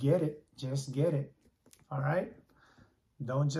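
A paper comic book rustles as a man handles it.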